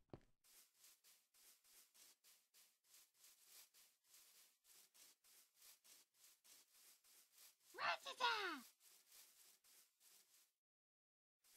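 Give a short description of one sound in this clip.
Footsteps crunch steadily over grass.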